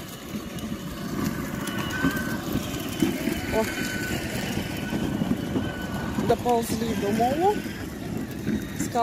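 A children's electric ride-on car whirs as it drives over paving stones.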